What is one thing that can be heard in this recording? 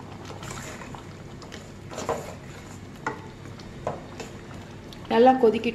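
A spoon stirs thick liquid in a metal pan.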